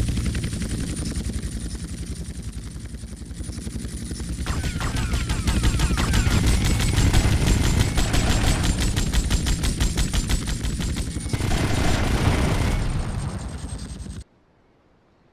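A helicopter's rotor blades thump rapidly overhead.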